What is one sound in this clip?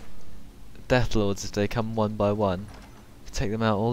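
A heavy iron door grinds open.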